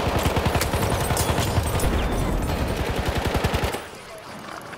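A machine gun fires in rapid bursts, loud and close.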